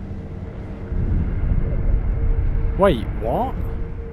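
A low magical whoosh swells and fades.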